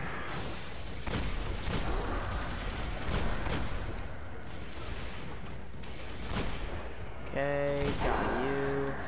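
A heavy pistol fires loud, booming shots.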